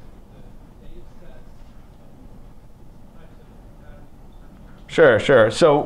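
A man speaks into a microphone in a large room, quietly at first and then much louder.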